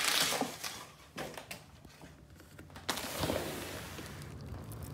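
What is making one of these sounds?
A window slides open.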